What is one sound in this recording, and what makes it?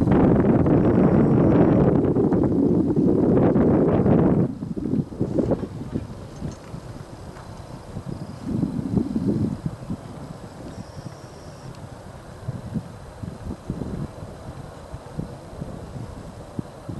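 Hooves thud on turf as a horse gallops.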